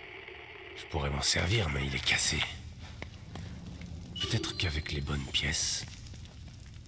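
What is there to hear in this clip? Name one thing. A man speaks calmly and low.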